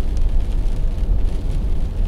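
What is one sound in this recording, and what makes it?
A wiper sweeps across a windscreen.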